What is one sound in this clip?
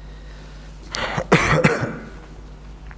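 A young man coughs into his hand.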